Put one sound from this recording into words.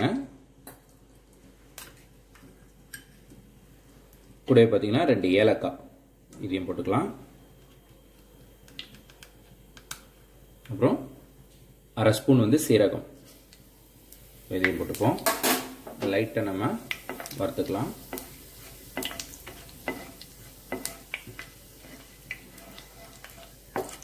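Hot oil sizzles softly in a pan.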